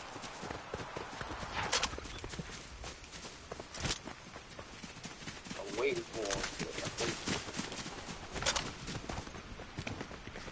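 Footsteps patter quickly through grass and dirt.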